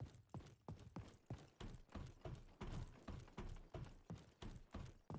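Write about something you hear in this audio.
Quick, even footsteps thud on a hard floor.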